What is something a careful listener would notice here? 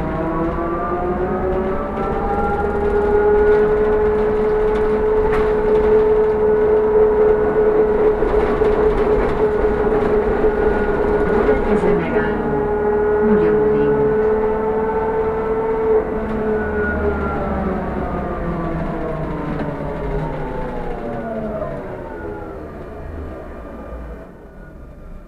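The inside of a bus rattles and rumbles while it drives.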